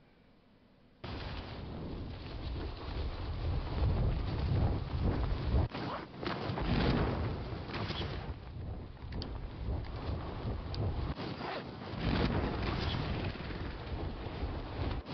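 Wind roars loudly past during a fast fall through the air.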